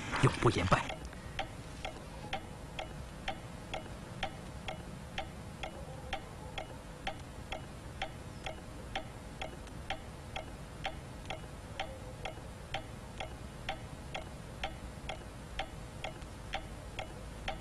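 A pendulum clock ticks steadily.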